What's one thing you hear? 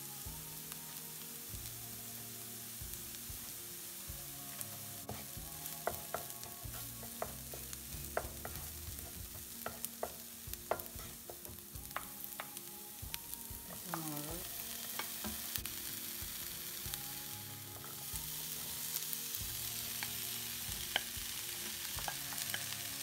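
Onions sizzle in hot oil in a pan.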